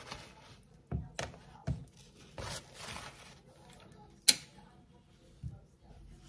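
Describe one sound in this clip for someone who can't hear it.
Strawberries are set down onto a plastic cutting board with soft taps.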